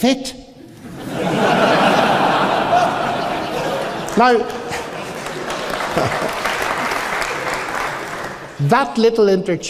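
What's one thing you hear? A large audience laughs and claps in a large hall.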